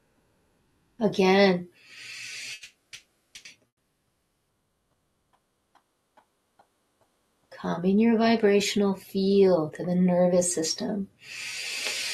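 An older woman speaks calmly and clearly, close by.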